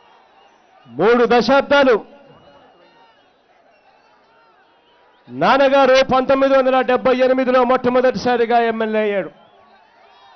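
A man speaks loudly into a microphone, heard through loudspeakers outdoors.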